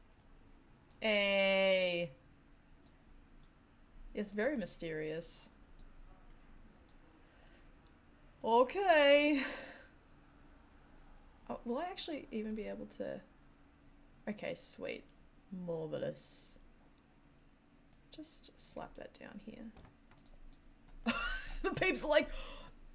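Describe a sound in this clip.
A woman talks calmly into a close microphone, in short bursts.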